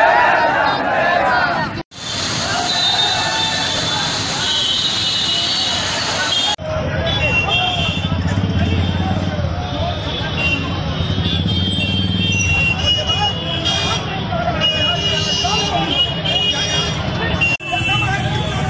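A crowd of men chants slogans loudly outdoors.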